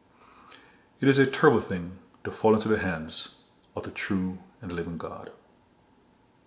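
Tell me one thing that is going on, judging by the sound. A man speaks earnestly and close to a microphone, then falls silent.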